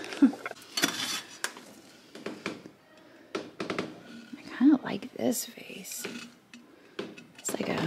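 A ceramic vase clinks and scrapes as a hand lifts and turns it.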